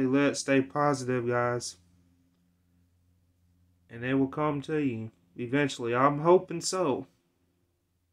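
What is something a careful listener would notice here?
A man speaks calmly and close to the microphone, in short bursts.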